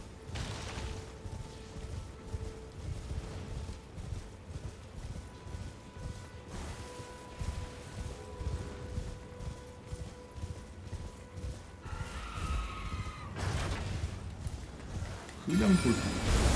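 Horse hooves pound steadily at a gallop.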